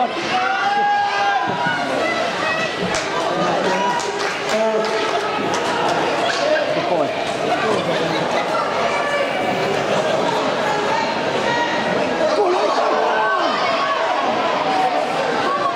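A crowd of spectators shouts and cheers in an echoing rink.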